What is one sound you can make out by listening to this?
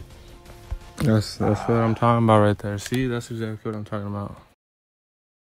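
A young man speaks loudly and with animation into a microphone.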